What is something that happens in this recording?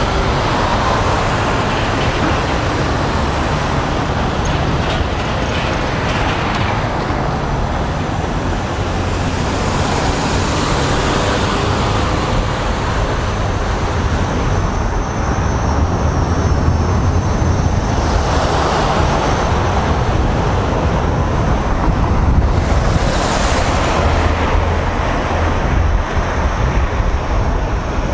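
A man talks to a microphone close by, partly covered by wind.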